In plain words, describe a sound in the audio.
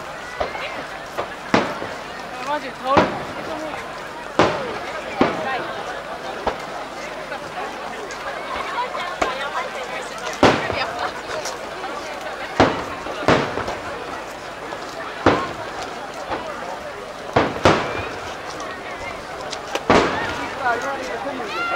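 Fireworks boom and crackle in the night sky, echoing in the distance.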